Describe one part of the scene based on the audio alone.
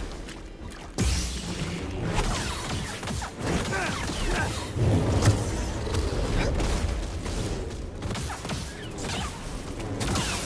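Energy blades hum and clash with sharp crackling hits.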